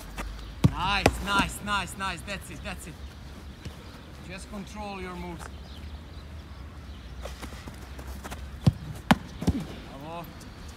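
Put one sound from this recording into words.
A goalkeeper dives and lands on the grass with a thump.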